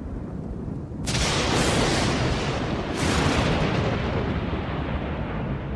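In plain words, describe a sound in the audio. Thunder cracks and rumbles loudly.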